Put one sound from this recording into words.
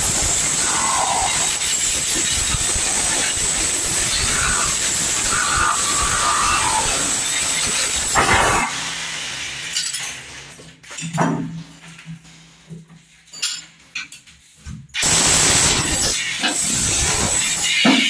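An electric chipping hammer rattles loudly against a wall.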